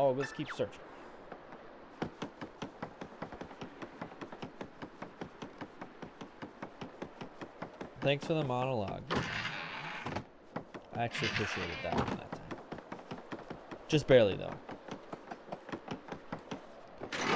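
Light footsteps patter rapidly from a game.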